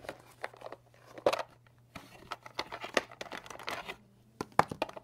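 A plastic case rattles as it is moved.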